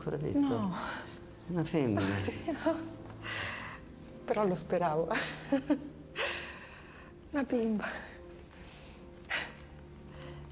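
A young woman speaks calmly and gently nearby.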